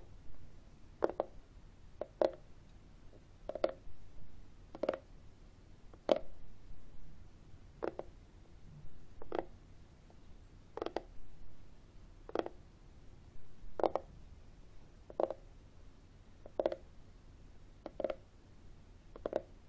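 Fingertips tap steadily on a hard plastic case, close by.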